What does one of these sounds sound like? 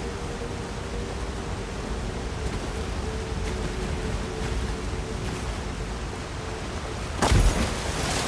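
Water splashes softly as a figure swims.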